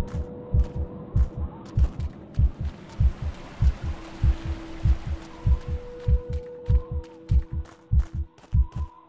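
Footsteps thud quickly and steadily on rock.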